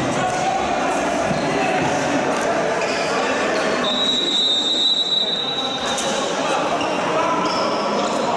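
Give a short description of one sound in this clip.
A crowd of spectators murmurs and calls out in a large echoing hall.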